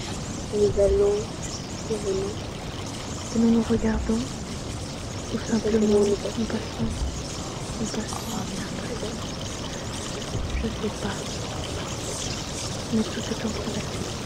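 A young woman speaks with feeling in a large hall.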